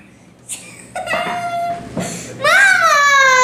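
A young boy shouts with excitement close by.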